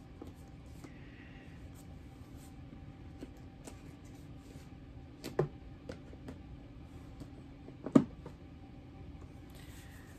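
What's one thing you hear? Plastic cases clatter and knock.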